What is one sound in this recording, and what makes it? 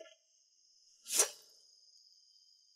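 A sword is drawn from its sheath with a sharp metallic ring.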